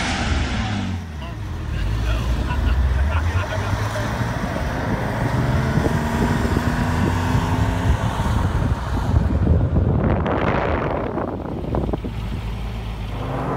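A sports car engine revs and roars as the car pulls away.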